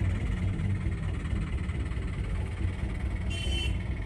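A motorcycle rides past close by.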